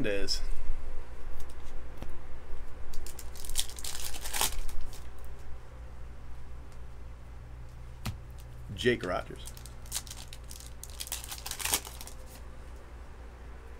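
A plastic wrapper crinkles and tears open.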